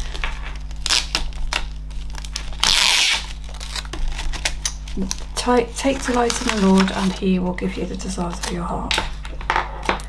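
Paper and plastic sheets rustle and crinkle as they are handled.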